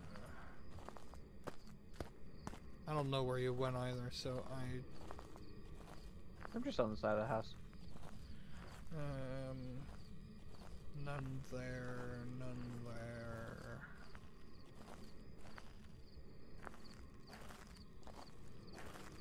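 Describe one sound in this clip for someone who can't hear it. Footsteps fall steadily on a hard path.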